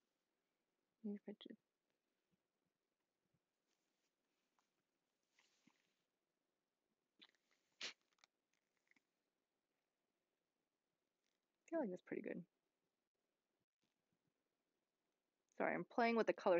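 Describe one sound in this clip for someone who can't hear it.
A young woman speaks calmly and close by, in short bursts.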